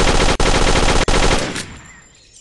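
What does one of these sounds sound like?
A submachine gun fires a rapid, loud burst.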